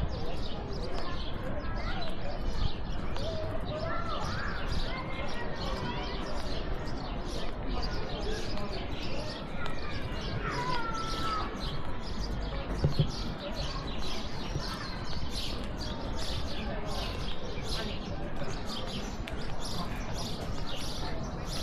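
Footsteps tap steadily on pavement outdoors.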